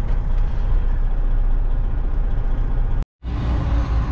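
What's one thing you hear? A truck engine hums from inside a cab.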